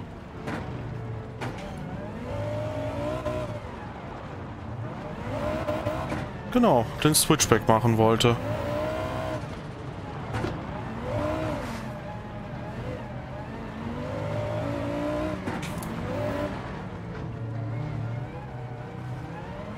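A game car engine roars and revs through gear changes.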